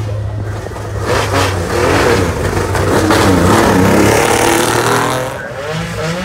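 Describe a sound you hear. A rally car accelerates hard and roars past, its engine revs rising and falling through the gears.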